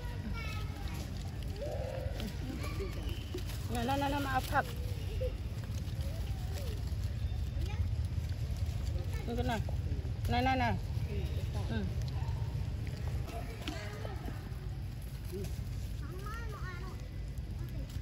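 A baby macaque squeals in high, wavering cries.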